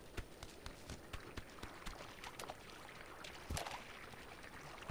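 Water splashes from a spout into a pool.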